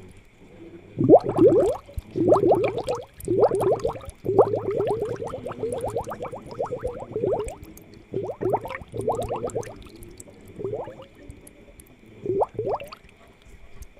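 Air bubbles gurgle and pop underwater in bursts.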